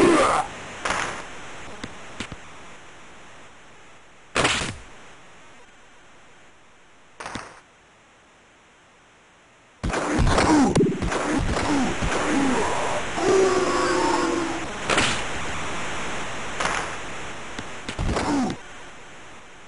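Hockey sticks slap a puck with sharp cracks.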